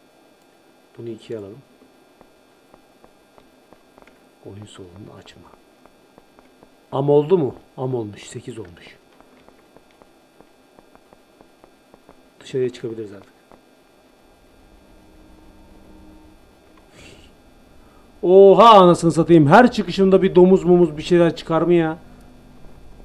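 A young man talks into a close microphone in short bursts, now and then with animation.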